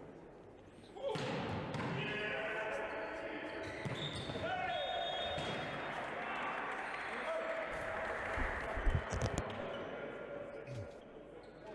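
A crowd cheers loudly in an echoing indoor hall.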